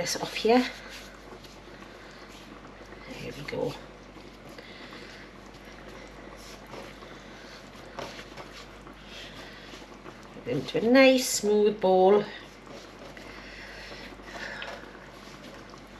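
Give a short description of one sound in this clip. Hands knead and squash soft dough.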